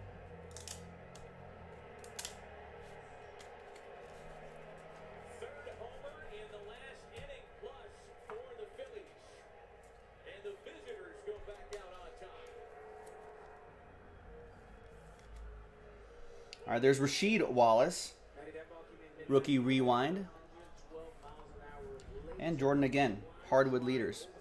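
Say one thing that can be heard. Trading cards rustle and slide as they are handled.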